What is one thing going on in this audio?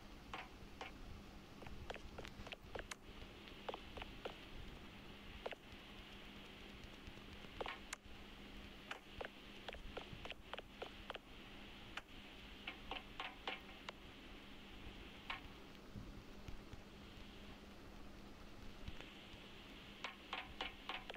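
Light footsteps tap on a hard floor.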